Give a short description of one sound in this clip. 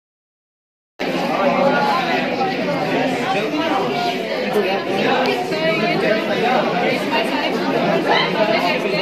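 Several young people talk at once around a room, in a busy crowd.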